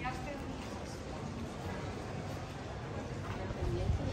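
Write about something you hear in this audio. Women talk casually close by.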